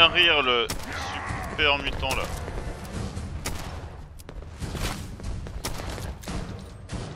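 A rifle fires repeated sharp shots.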